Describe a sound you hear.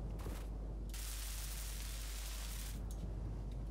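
A tool hisses steadily, then stops.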